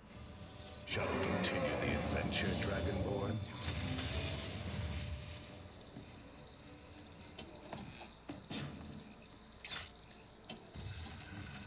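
A pinball ball rolls and clacks against bumpers and flippers.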